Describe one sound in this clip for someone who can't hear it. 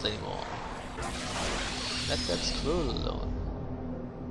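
A spell bursts into flame with a crackling whoosh.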